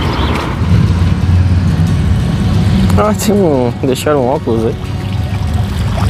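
Water trickles gently in a fountain.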